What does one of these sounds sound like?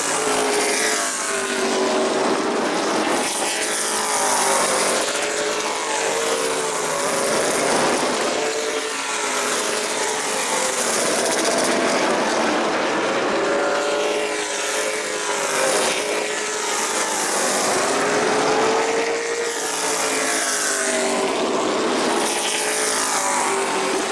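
Race car engines roar loudly as they speed past, rising and falling in pitch.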